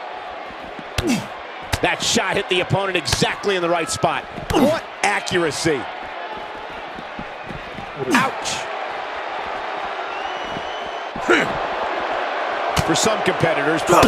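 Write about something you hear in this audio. Punches land with sharp smacks.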